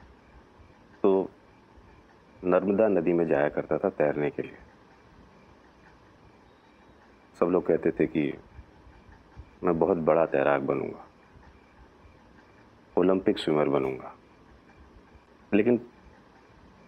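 A middle-aged man speaks calmly and quietly nearby, in short bursts with pauses.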